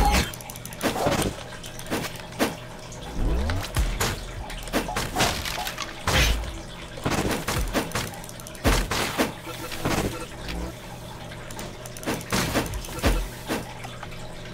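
Sword slashes whoosh and strike in quick bursts.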